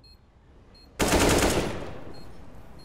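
A rifle fires a loud rapid burst.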